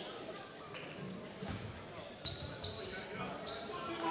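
A basketball bounces on the floor with dull thumps.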